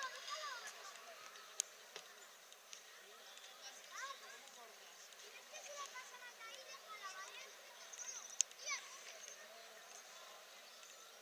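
Children shout and call out across an outdoor football pitch.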